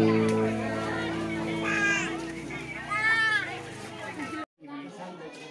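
A lively crowd of children and adults chatters and calls out nearby.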